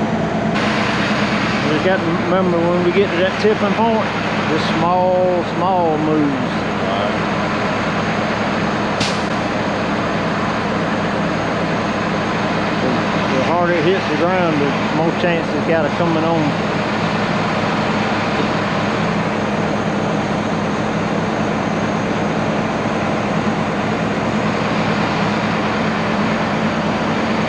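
Diesel truck engines idle steadily nearby.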